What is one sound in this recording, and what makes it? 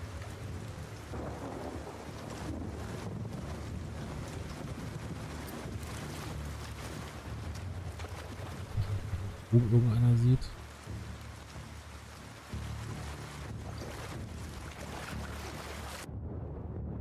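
Tall grass rustles softly as someone creeps through it.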